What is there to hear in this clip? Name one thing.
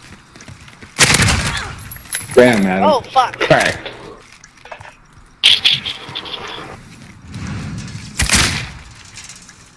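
A rifle fires in short, loud bursts.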